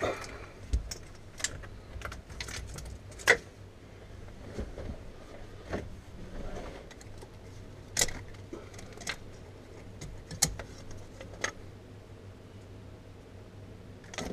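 Wires and plastic parts rattle and click as hands work on them.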